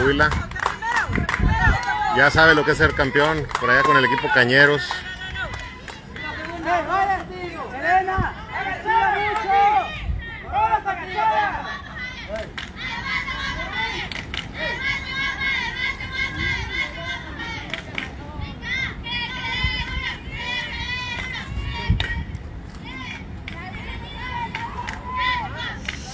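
Spectators shout and cheer from a distance outdoors.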